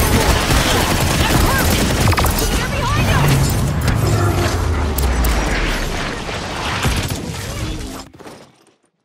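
Gunfire and blasts crackle loudly in a fast burst.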